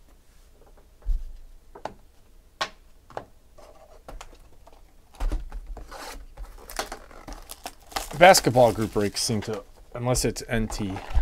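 Cardboard boxes knock and slide on a table.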